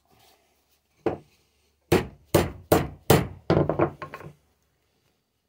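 A hammer strikes metal with sharp, ringing blows.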